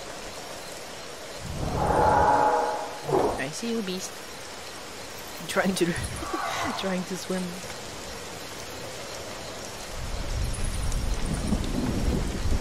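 A large creature's footsteps thud softly through rustling undergrowth.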